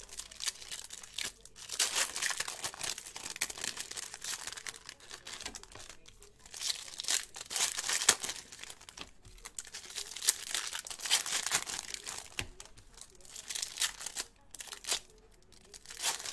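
Foil wrappers crinkle and tear as packs are ripped open.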